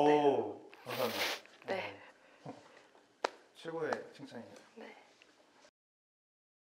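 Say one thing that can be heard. A young woman speaks softly and nearby.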